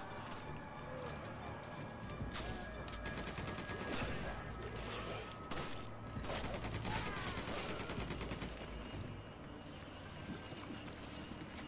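Video game gunfire rattles in short bursts.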